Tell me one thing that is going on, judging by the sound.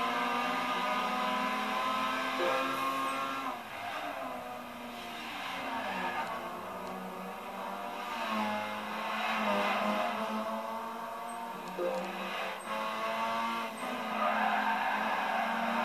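A racing car engine roars and revs up and down through the gears.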